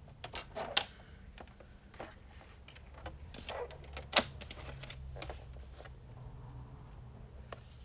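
Paper slides and rustles against a board.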